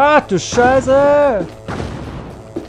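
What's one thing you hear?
A large creature lets out loud, wavering roars.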